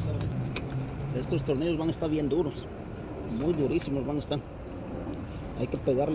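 A screwdriver turns a screw in a car door's metal frame.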